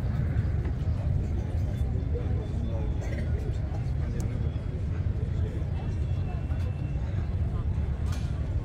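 Men and women chat quietly nearby.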